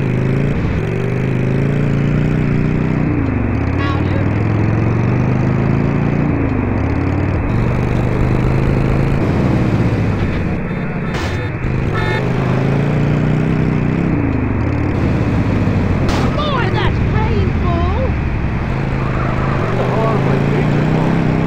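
A motorcycle engine roars and revs up and down as it rides.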